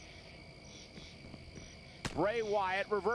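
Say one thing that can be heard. A punch lands with a dull thud.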